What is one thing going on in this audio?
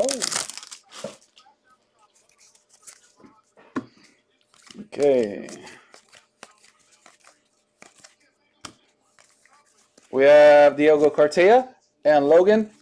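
Trading cards shuffle and flick against each other.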